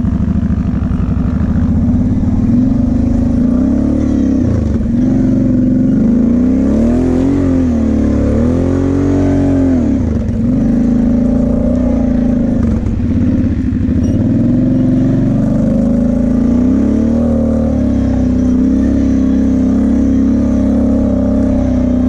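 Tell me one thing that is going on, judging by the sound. A quad bike engine revs up and down loudly, close by.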